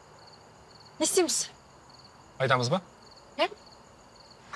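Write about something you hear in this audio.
A young woman speaks briefly nearby.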